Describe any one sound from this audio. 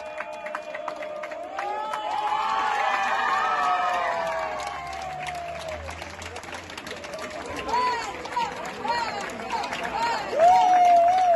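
A crowd of people claps and applauds.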